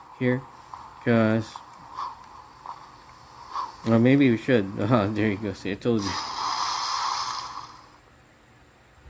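A handheld game console plays game sounds through its small speaker.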